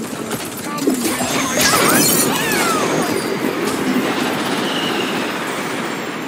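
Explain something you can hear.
Energy blasts crackle and boom in a fight.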